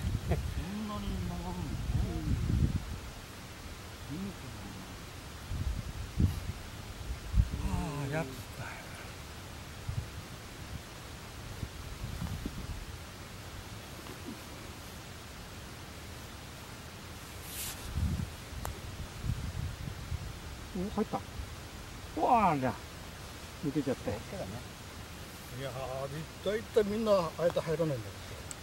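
Men talk casually outdoors, heard from nearby.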